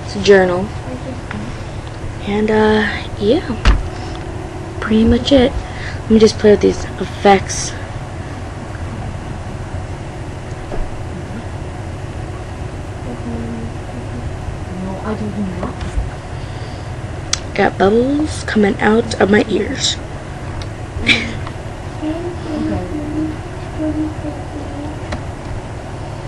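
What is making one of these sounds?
A young girl talks casually, close to the microphone, in short bursts.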